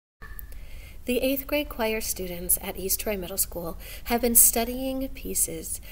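A young woman speaks calmly and clearly, close to a computer microphone.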